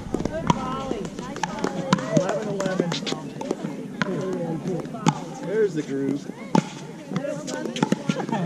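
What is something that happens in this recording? Paddles smack a plastic ball back and forth with sharp pops.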